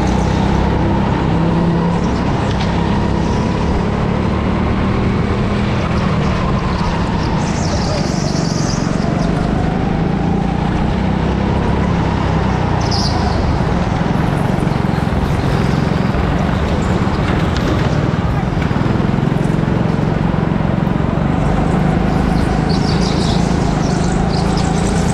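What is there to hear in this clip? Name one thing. A go-kart engine drones loudly up close, its pitch rising and falling with the throttle.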